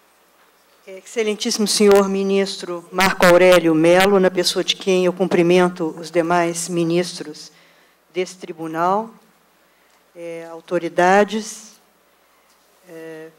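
A woman speaks steadily into a microphone.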